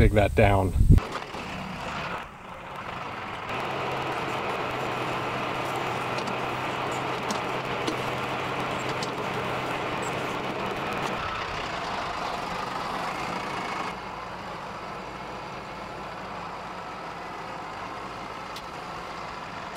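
A tractor engine runs with a steady rumble.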